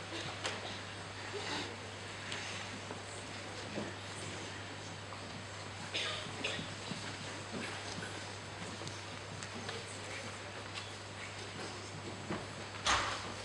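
Footsteps shuffle across a stage.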